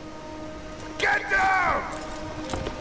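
A man groans in pain.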